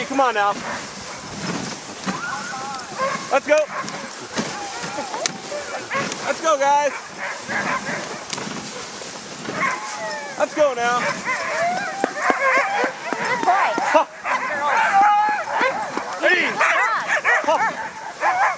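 Sled runners hiss steadily over packed snow.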